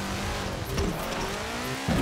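Water splashes loudly around a car.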